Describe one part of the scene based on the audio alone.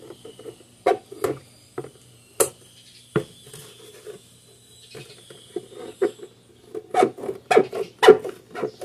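Thin plastic crinkles and rattles as it is handled.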